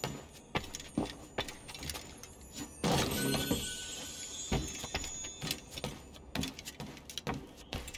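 Footsteps thud quickly on wooden floorboards.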